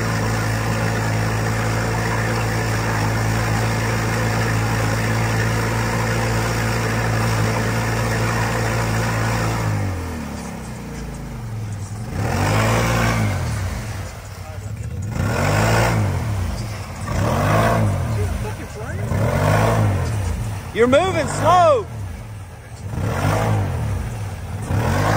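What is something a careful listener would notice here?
An off-road vehicle's engine roars steadily, then revs up and down in repeated bursts.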